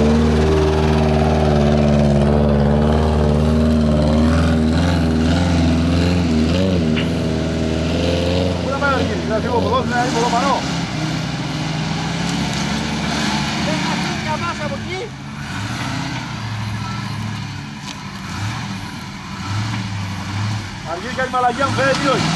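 An engine revs and labours nearby.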